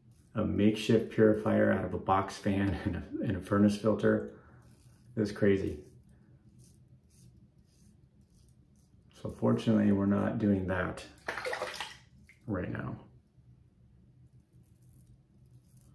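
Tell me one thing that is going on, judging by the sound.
A razor scrapes across stubble.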